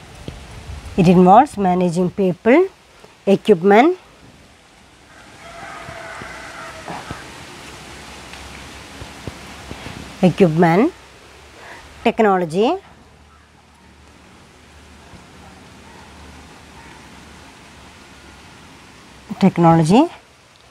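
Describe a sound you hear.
A woman speaks clearly in short phrases, with pauses between them.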